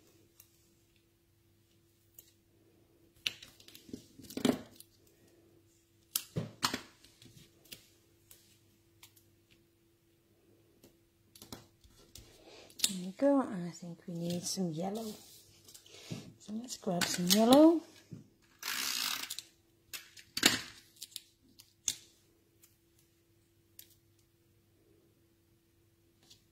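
Paper strips rustle and tap lightly as hands arrange them.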